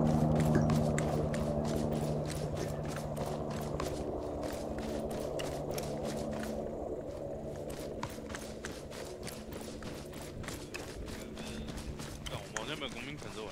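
Footsteps thud quickly on grass as several people run.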